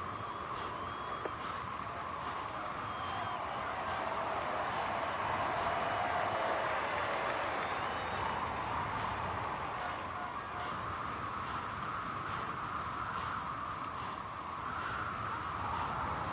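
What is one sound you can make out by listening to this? A roadside crowd cheers and claps.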